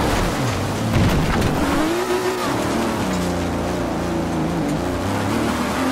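Tyres rumble and crunch over gravel.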